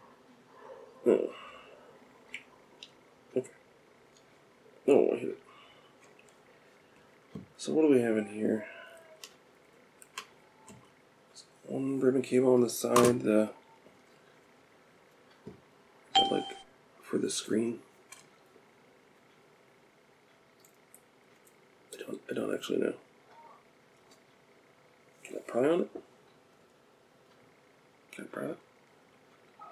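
Small plastic and metal parts click and tap as they are handled.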